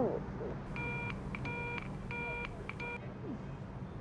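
A phone beeps in short repeated tones.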